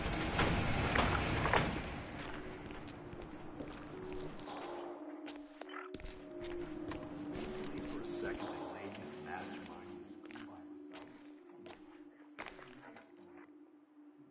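Footsteps crunch over gritty debris on a hard floor.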